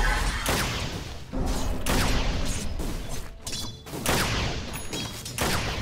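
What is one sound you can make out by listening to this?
Weapons clash and strike repeatedly in a game battle.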